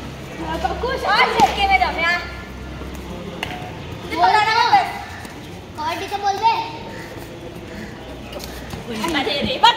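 Children shout sharply in short bursts, outdoors.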